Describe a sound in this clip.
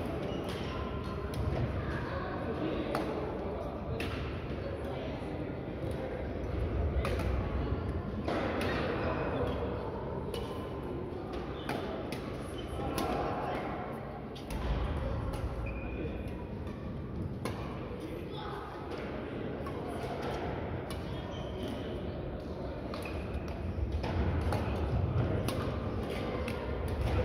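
Shoes squeak and thud on the court floor.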